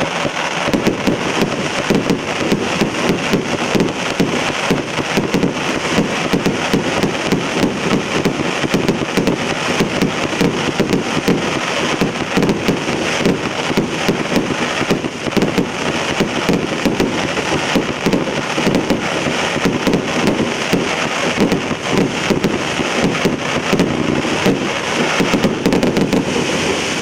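Firework shells burst and crackle overhead.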